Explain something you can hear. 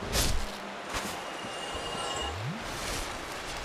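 A fire flares with a whoosh.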